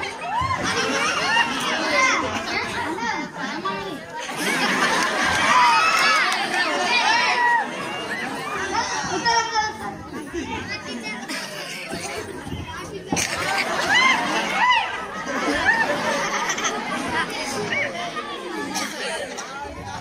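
A boy speaks with animation into a microphone over loudspeakers.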